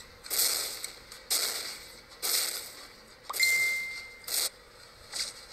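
Game attack effects burst with sharp, hissing blasts again and again.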